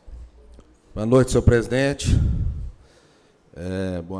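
An older man speaks into a handheld microphone.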